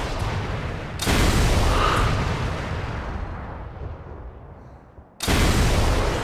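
A huge explosion roars and rumbles away.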